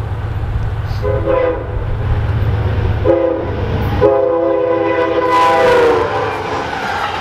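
A train horn blows loudly in several long blasts.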